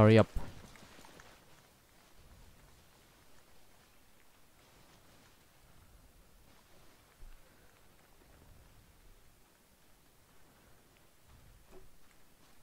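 Footsteps rustle through dry brush at a steady walking pace.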